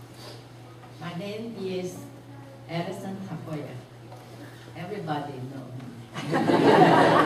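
An elderly woman speaks calmly into a microphone in an echoing hall.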